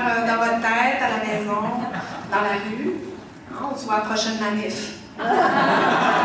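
A young woman speaks expressively into a microphone.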